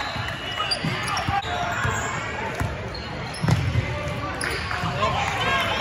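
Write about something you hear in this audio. A basketball bounces on the floor with dull thuds.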